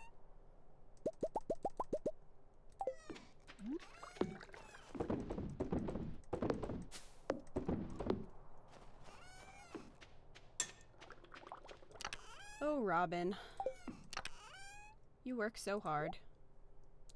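Soft chimes ring out as menus open in a video game.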